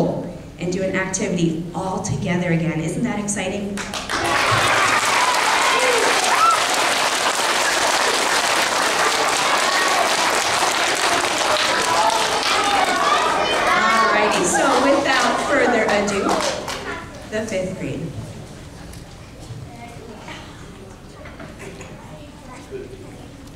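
A young woman speaks into a microphone through loudspeakers in a large hall.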